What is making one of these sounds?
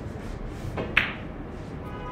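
A cue strikes a pool ball with a sharp click.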